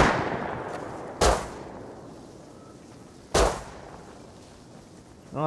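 A pistol fires single sharp shots that echo outdoors.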